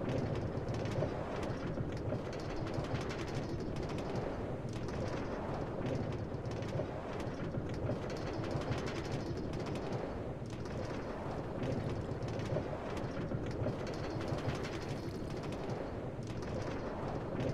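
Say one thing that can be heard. A cart rattles steadily along metal rails.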